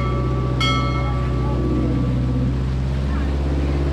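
Churning water rushes and splashes behind a moving boat.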